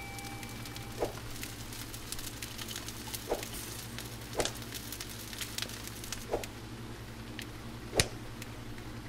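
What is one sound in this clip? Short knocks sound as food is set down on a counter.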